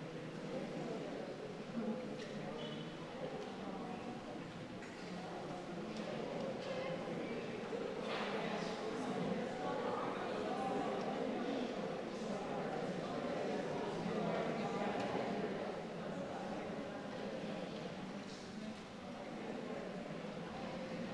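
Several women talk quietly nearby, in a murmur of overlapping voices.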